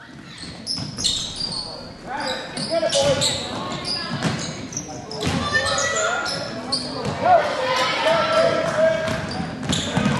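Sneakers squeak on the court as players run.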